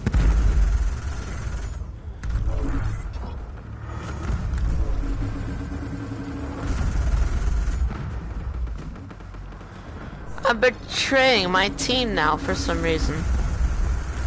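Laser cannons fire in bursts.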